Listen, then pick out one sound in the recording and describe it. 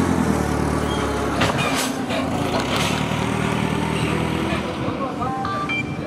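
A forklift engine hums nearby.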